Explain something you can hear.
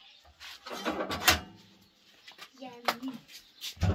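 A metal door clanks shut.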